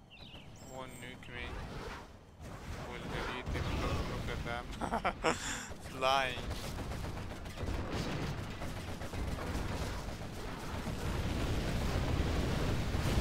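Gunfire and missiles crackle and whoosh in a game battle.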